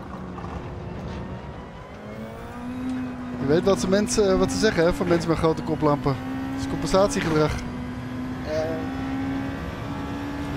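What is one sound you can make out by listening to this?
A racing car engine revs higher and higher as the car speeds up.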